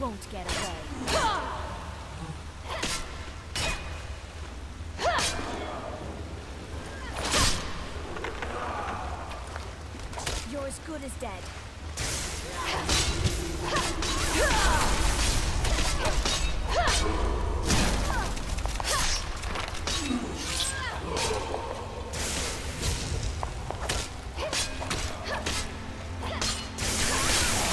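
Swords clash and slash in quick blows.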